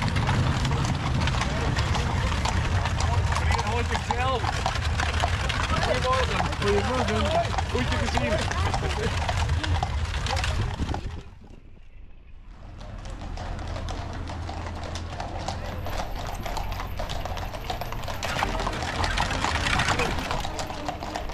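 Carriage wheels rumble and rattle over the road.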